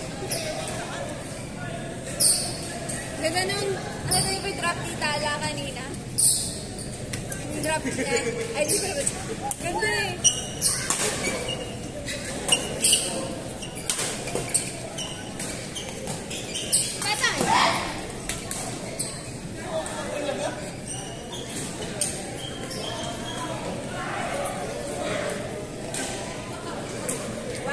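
Shuttlecocks are struck with sharp taps of rackets in a large echoing hall.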